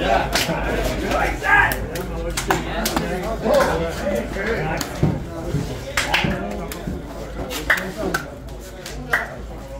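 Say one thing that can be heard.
Several men talk and greet each other close by.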